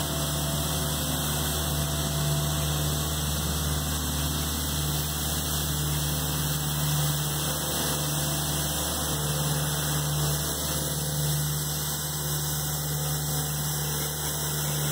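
A street sweeper's engine hums steadily nearby.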